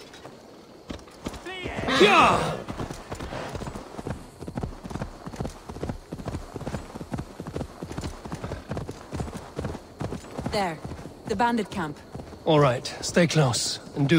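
A horse's hooves thud in a quick rhythm on soft ground.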